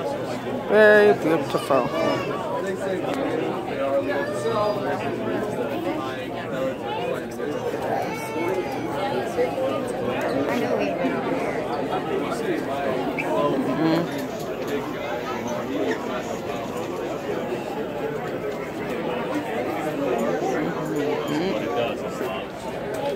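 A crowd of people chatters in a large indoor hall.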